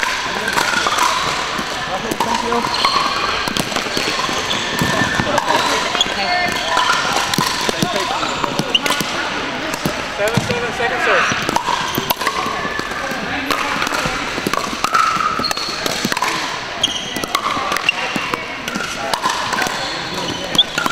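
Paddles pop against a plastic ball in quick rallies.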